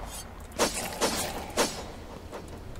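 A machete slashes into flesh.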